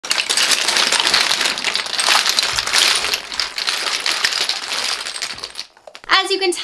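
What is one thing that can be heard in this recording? Many small plastic tubes and bottles clatter and rattle as they tumble out of a wire basket.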